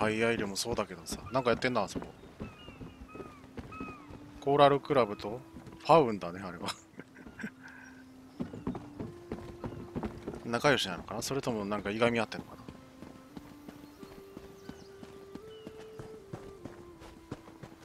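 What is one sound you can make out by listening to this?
Footsteps thud on wooden planks and then on a stone path.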